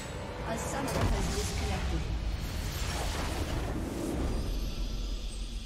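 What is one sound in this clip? A large structure explodes with a deep, rumbling crash.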